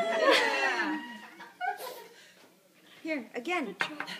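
A woman laughs and talks cheerfully close by.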